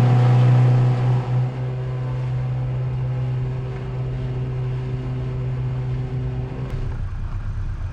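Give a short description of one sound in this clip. A speedboat's motor hums steadily in the distance.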